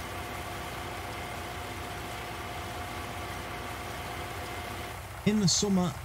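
Grain pours steadily from a conveyor into a truck bed.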